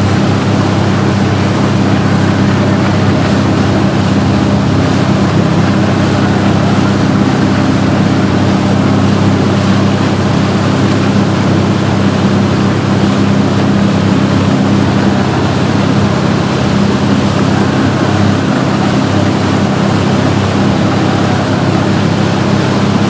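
Water churns and splashes loudly in the boat's wake.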